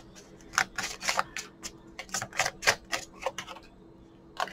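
Tarot cards are shuffled with crisp slaps.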